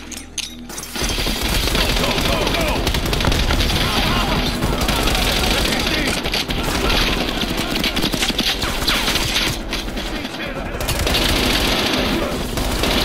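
Rapid gunfire rattles loudly and close by.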